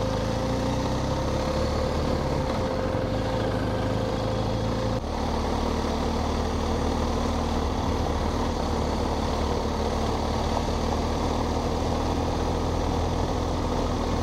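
A motorcycle engine hums steadily at low revs.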